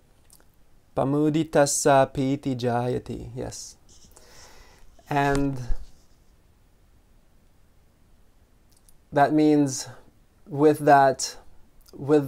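A man speaks calmly and slowly, close by, with long pauses.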